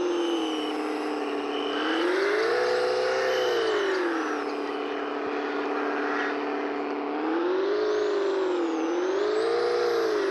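A truck engine revs up and down as it climbs.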